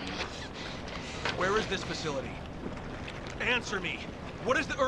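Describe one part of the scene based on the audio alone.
A man demands answers in a deep, angry voice.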